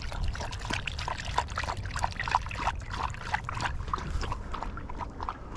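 A dog pants and whines close by.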